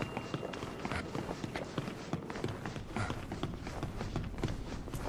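Footsteps thud quickly across a hard floor.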